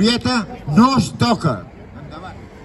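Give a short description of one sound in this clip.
An elderly man speaks loudly through a microphone and loudspeaker.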